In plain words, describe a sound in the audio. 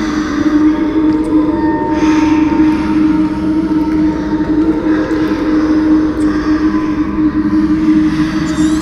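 A magical glow hums with a steady, low drone.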